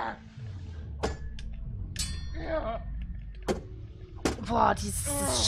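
Swords clash with sharp metallic clangs.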